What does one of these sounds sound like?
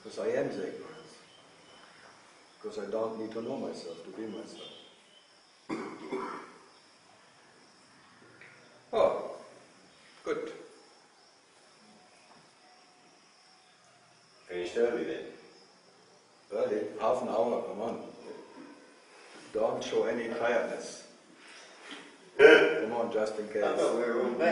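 A middle-aged man speaks calmly and thoughtfully, close by, with pauses.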